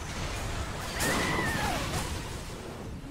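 A large explosion bursts nearby.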